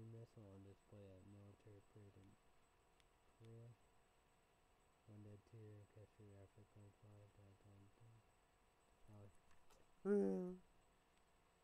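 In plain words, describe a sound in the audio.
A young man speaks quietly and calmly, close by.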